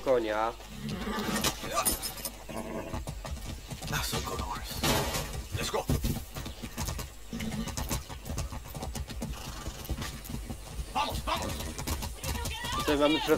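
A horse's hooves clop steadily on a dirt track.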